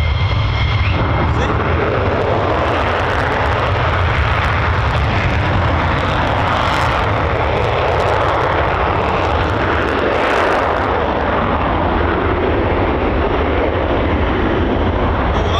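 A fighter jet roars with a deep, crackling rumble as it speeds away down a runway.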